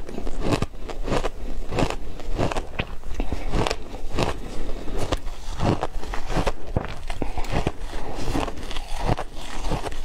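A young woman smacks her lips while chewing.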